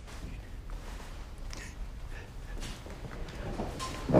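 A middle-aged man chuckles softly.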